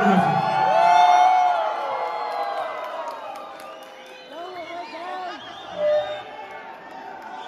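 Electric guitars ring out loudly through a large echoing hall.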